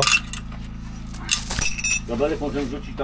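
Metal clanks and scrapes close by.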